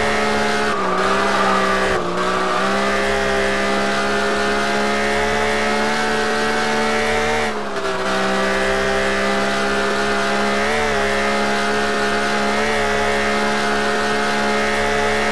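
A car engine roars steadily at high revs, dipping briefly at gear changes.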